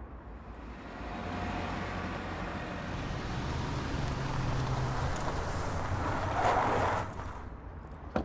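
A car drives up and its engine hums as it passes.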